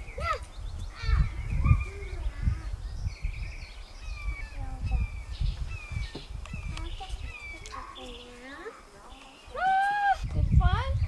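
A young boy speaks softly close by.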